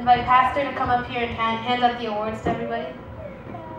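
A young woman speaks into a microphone in an echoing room.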